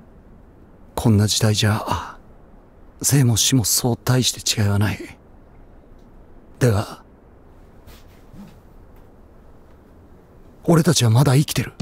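A man speaks in a low, intent voice close by.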